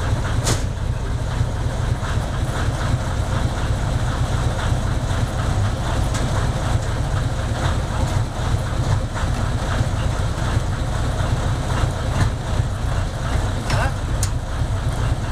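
Metal clinks and clanks as a man works at the front of a locomotive.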